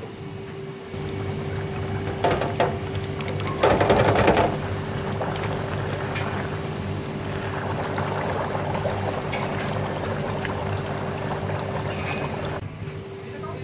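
Hot oil sizzles and bubbles loudly as food fries.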